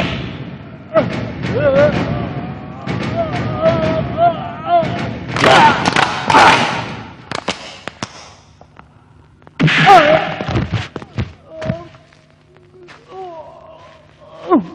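A man groans and cries out in pain.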